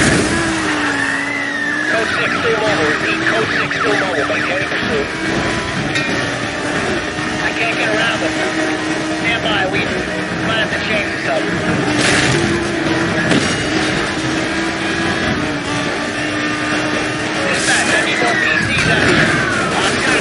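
A police siren wails.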